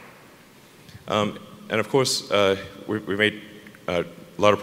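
A man speaks calmly through a loudspeaker.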